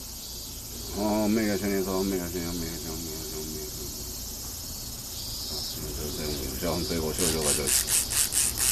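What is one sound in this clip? A man chants in a low, steady voice close by.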